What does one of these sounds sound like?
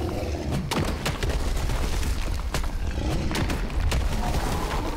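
A sword clangs and thuds against a monster's body.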